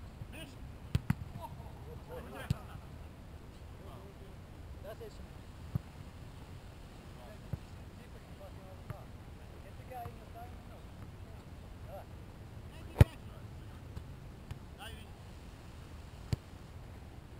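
A soccer ball is kicked with dull thumps.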